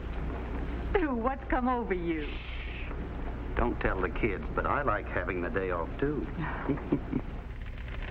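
A middle-aged man speaks softly and close by.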